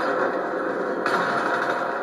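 A rocket explosion booms through a loudspeaker.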